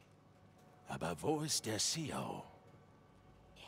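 A man speaks in a low, questioning voice.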